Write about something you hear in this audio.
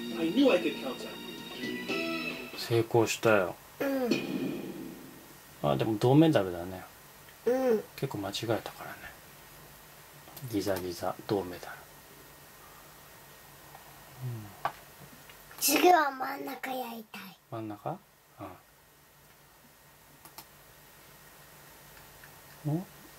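A computer game plays short chimes and jingles through small speakers.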